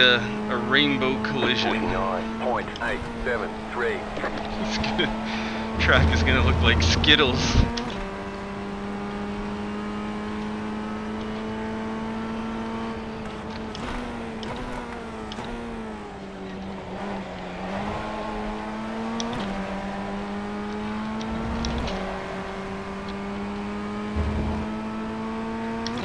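A racing car engine drones steadily, its pitch dipping and rising as it shifts.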